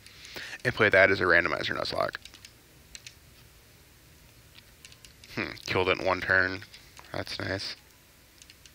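A young man talks with animation into a nearby microphone.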